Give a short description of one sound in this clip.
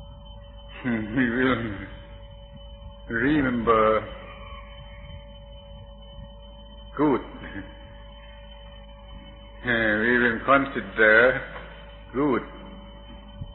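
An elderly man speaks slowly and calmly in short phrases with long pauses, heard through an old, humming recording.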